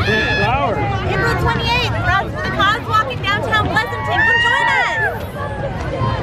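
A young woman talks excitedly close by.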